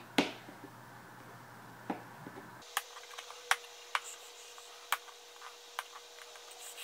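Plastic clicks and taps on a toy box.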